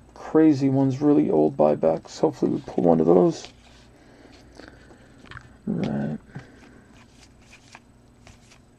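Trading cards rustle and slide against each other in a hand.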